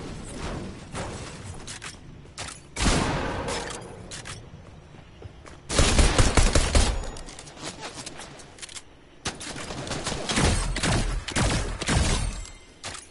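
A man talks into a microphone with animation.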